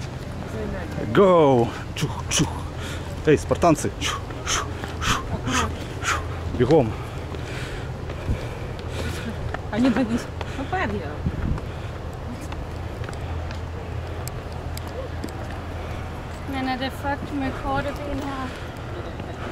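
Young women talk and call out with animation nearby, outdoors.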